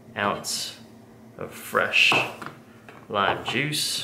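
A knife cuts through a lime and taps a wooden board.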